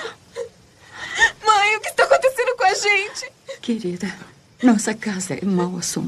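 A woman speaks softly and closely.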